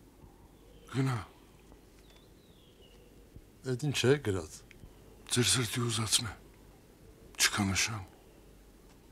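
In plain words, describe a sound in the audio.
A man speaks in short bursts, close by.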